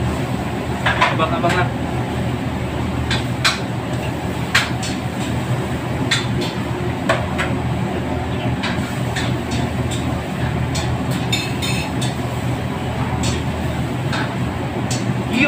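A man speaks close by, casually.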